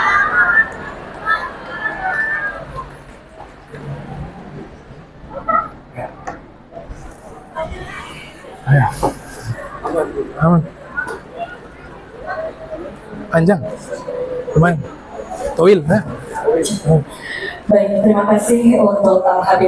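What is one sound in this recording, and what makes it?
A woman speaks with feeling into a microphone, heard over loudspeakers outdoors.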